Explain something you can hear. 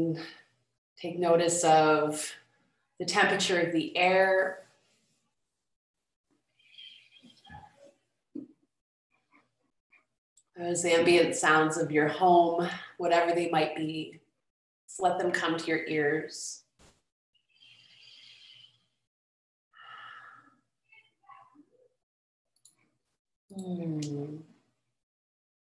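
A young woman speaks calmly and warmly over an online call.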